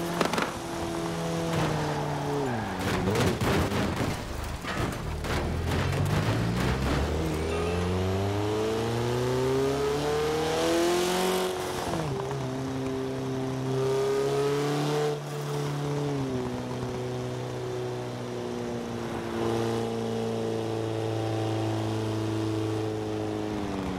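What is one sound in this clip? A car engine roars, revving up and down as gears shift.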